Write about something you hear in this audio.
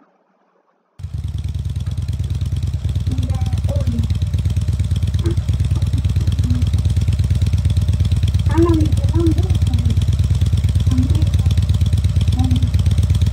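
Kart engines idle with a steady buzzing rumble.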